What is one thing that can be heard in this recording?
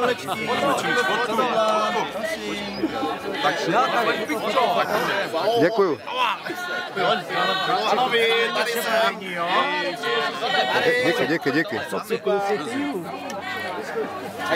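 An elderly man laughs and talks cheerfully close by.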